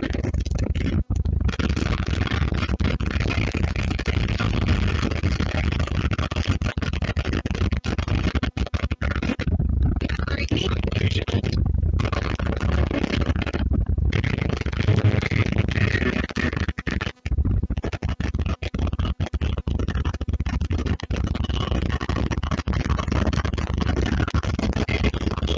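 Loud music plays from a car stereo.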